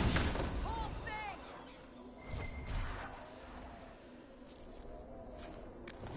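Weapons clash and strike in a brief fight.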